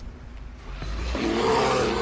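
A bear growls loudly nearby.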